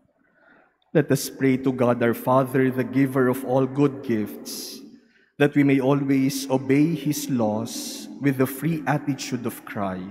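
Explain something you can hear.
A young man chants through a microphone in a large echoing hall.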